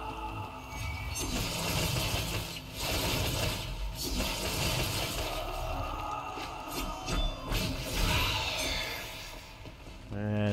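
A crackling, whooshing burst of magical energy roars steadily.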